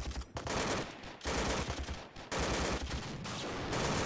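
A shell bursts on open ground.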